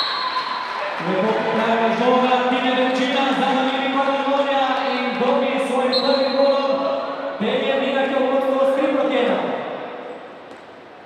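A crowd of fans chants and sings together.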